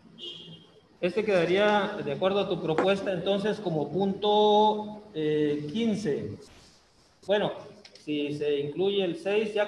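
A man speaks with animation through an online call.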